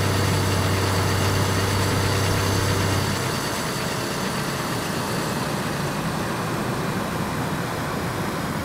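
A car engine hums steadily while driving, then eases off.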